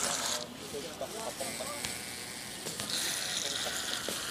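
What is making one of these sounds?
A toy boat's small motor whirs on the water.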